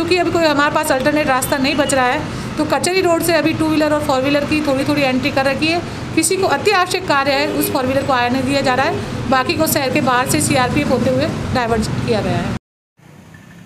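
A woman speaks calmly into microphones close by.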